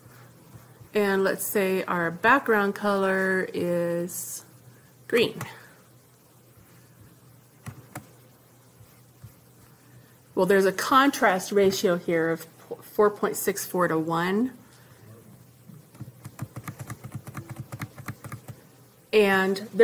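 A woman speaks calmly and closely into a microphone, in short phrases with pauses.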